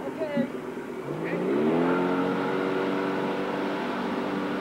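A motorboat engine revs up and drones steadily in the distance.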